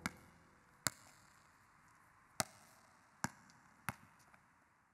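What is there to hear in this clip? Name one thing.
Footsteps knock sharply on a hard floor.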